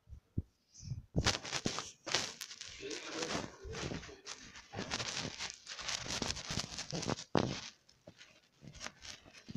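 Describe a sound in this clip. Fabric rustles and scrapes close by.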